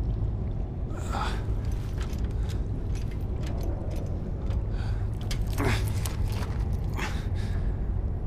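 Metal restraints clank.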